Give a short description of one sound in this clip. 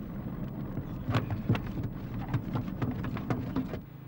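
A sea turtle's flippers knock and scrape on a wooden deck.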